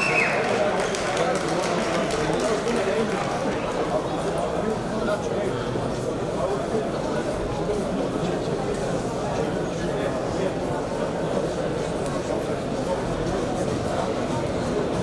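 A large crowd cheers and chatters loudly in a big echoing hall.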